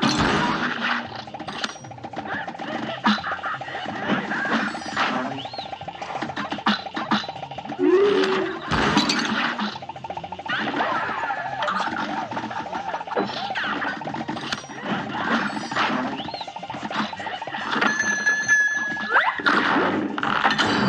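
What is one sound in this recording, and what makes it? Rapid cartoon gunfire pops and zaps in quick bursts.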